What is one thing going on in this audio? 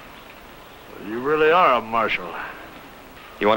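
A middle-aged man speaks in a rough, strained voice.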